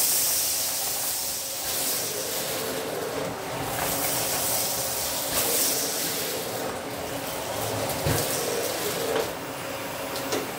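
A vacuum cleaner nozzle swishes back and forth over a rug.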